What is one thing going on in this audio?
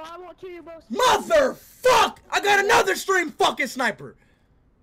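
A young man laughs loudly and wildly.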